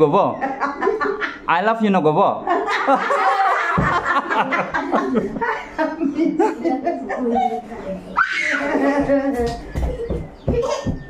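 Several girls and women laugh loudly together close by.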